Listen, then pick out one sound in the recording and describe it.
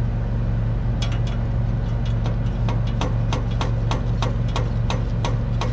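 A man clicks metal parts of a machine into place with his hands.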